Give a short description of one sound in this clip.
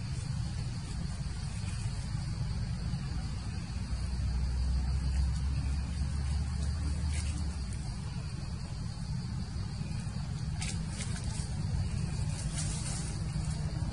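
Dry leaves rustle as a small monkey moves across the ground.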